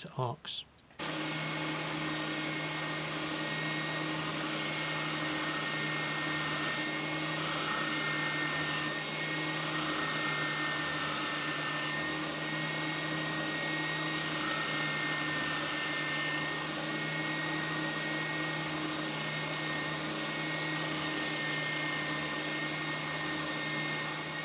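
Wood rasps against a spinning sanding drum.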